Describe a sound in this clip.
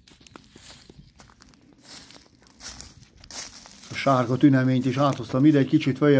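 Footsteps crunch on dry reeds and grass.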